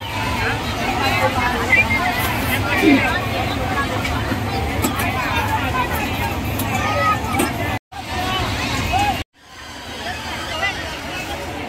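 A crowd of children and adults chatters and shouts nearby.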